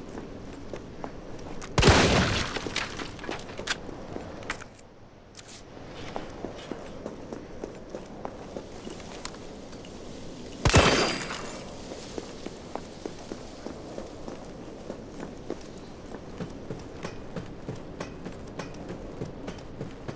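Footsteps tap steadily on hard stone.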